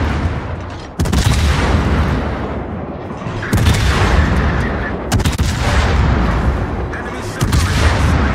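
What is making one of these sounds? Shells explode nearby with deep, rumbling blasts.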